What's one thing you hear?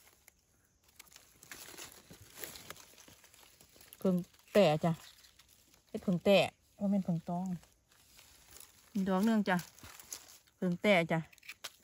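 A knife scrapes a mushroom.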